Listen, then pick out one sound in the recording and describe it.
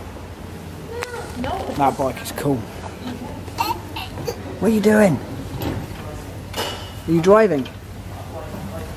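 A man talks close by in a casual tone.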